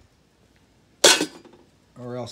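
A metal tray bumps and clanks.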